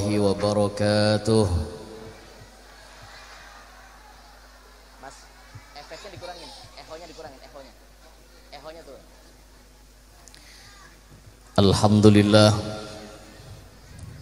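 A man chants loudly through a microphone and loudspeakers, his long notes echoing.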